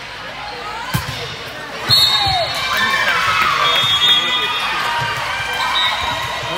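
A volleyball is smacked hard.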